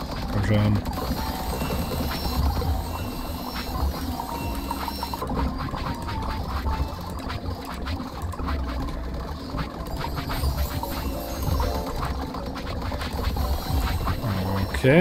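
Small wooden machines clatter and knock with quick, irregular taps.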